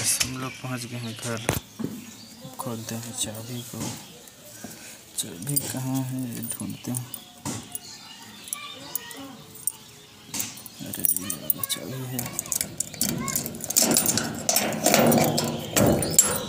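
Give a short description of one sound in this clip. A padlock rattles against a metal door bolt.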